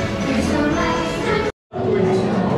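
Cheerful music plays over loudspeakers.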